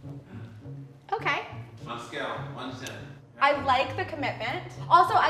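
A young woman speaks with animation up close.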